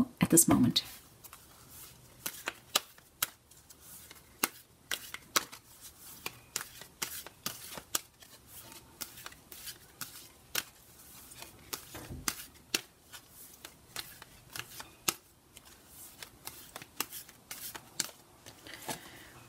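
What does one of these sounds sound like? Playing cards riffle and slap softly as a deck is shuffled by hand.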